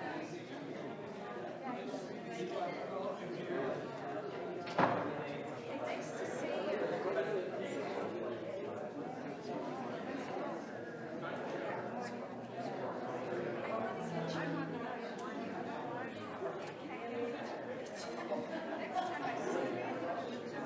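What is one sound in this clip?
Many people chat in a murmuring crowd indoors.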